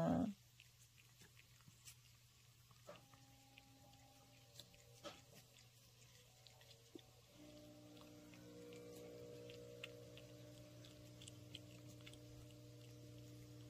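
A cat licks and laps at a treat close by.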